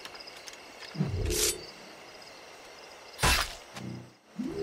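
A knife slices wetly through an animal's hide.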